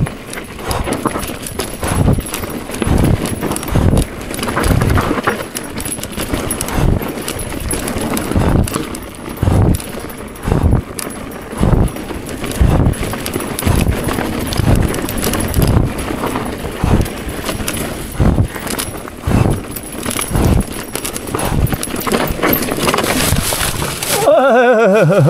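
A bicycle rolls and rattles over a rough dirt trail.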